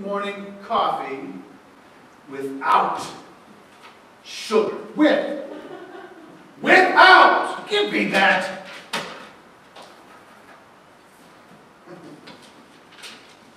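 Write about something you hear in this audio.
Two men talk back and forth, heard from a distance in a large hall.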